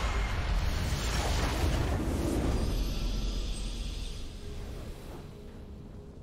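A crystal shatters with a loud rumbling blast that slowly fades.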